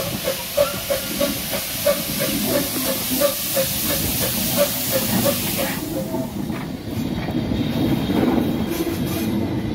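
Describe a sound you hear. A steam locomotive's wheels rumble and clank on the rails close by.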